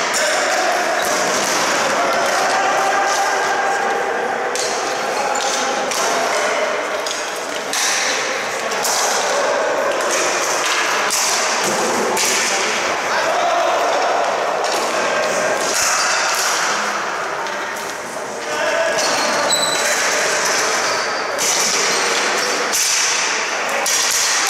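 Young players shout and call out in a large echoing arena.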